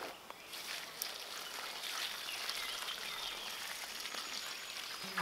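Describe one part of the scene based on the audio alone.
Water pours from a watering can onto the ground.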